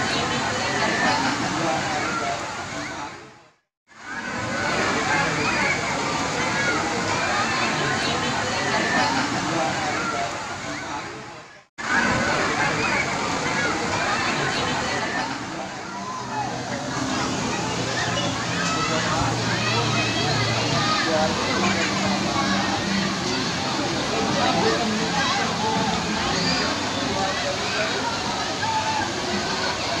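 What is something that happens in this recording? Water splashes as children play in a pool.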